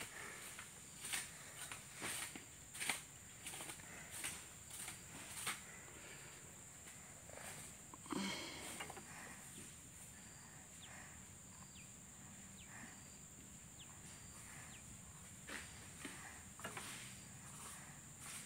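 A buffalo's hooves crunch through dry palm fronds and grass.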